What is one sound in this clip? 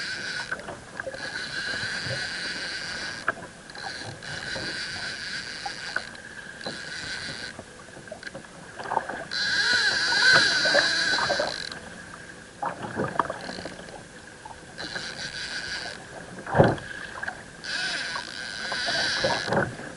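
A fishing reel whirs and clicks in quick bursts.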